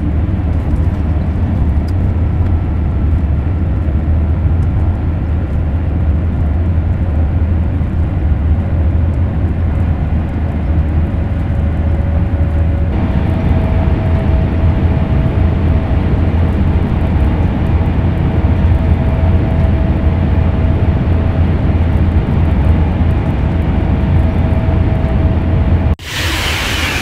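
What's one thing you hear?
A high-speed train rumbles and hums steadily as it races along the tracks.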